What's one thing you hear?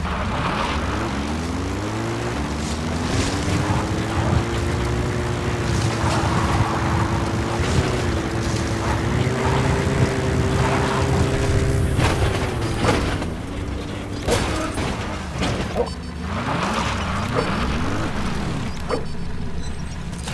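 Tyres crunch over sand and gravel.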